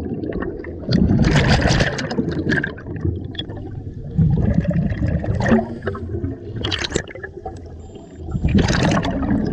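Air bubbles gurgle and rush loudly underwater.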